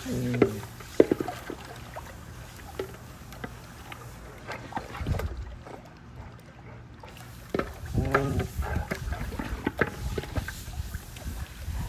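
A dog splashes and paddles through water.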